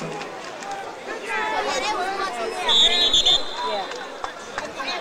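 A crowd of people shout and cheer outdoors.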